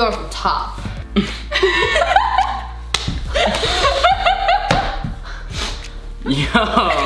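Teenagers laugh loudly close by.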